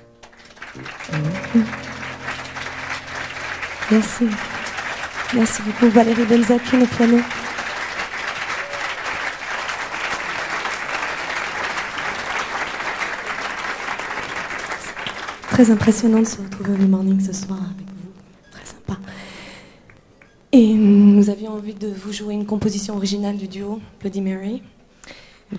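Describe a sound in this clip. A woman sings into a microphone on a stage.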